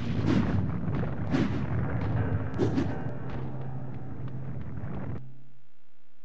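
Game sound effects of sharp blows and whooshes play loudly.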